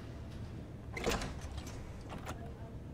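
A door opens.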